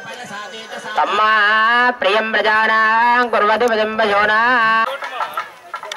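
A song plays loudly through a loudspeaker.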